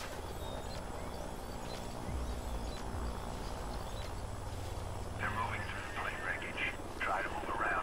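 Leaves rustle as someone pushes through dense plants.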